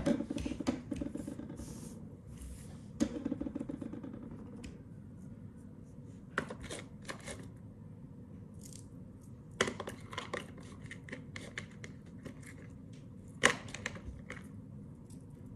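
Paper pages rustle and tap as a notebook is handled.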